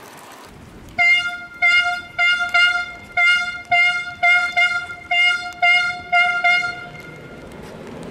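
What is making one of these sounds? A police siren blares in short repeated bursts nearby.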